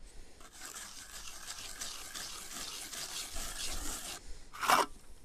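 A trowel scrapes and rasps across wet concrete.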